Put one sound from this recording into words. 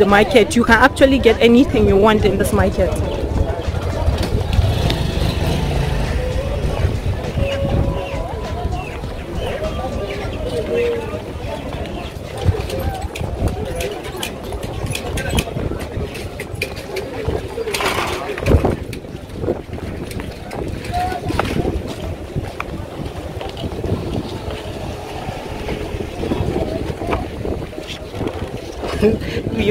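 Voices chatter in a busy outdoor market.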